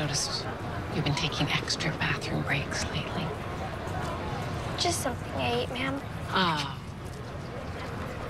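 A woman speaks calmly and warmly close by.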